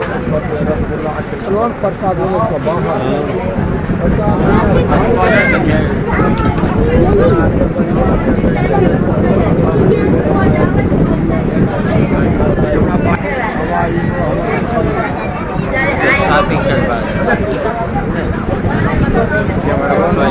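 A crowd of women and men chatter loudly close by, with many overlapping voices.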